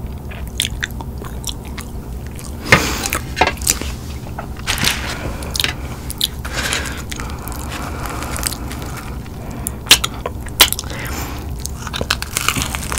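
A young woman chews food wetly and close to the microphone.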